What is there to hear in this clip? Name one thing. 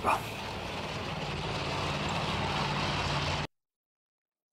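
A tank engine rumbles as the tank drives along.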